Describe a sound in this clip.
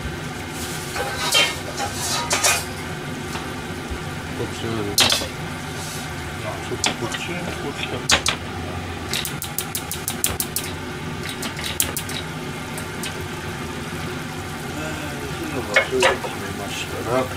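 Metal pans clank and scrape as they are moved on a stovetop.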